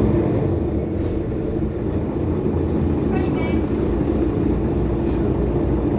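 A bus engine idles nearby with a steady low rumble.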